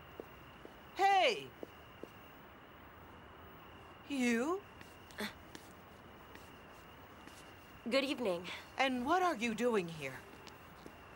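A middle-aged woman calls out loudly close by.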